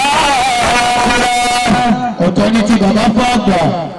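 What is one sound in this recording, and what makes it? A young man chants melodically into a microphone over a loudspeaker.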